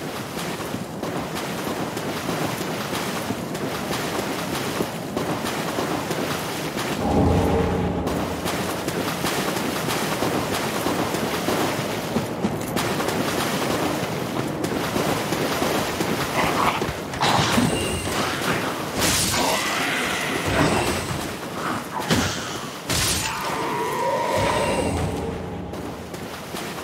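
An armoured figure wades through water with steady splashing footsteps.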